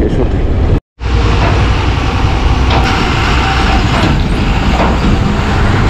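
A heavy truck engine growls close by as the truck passes.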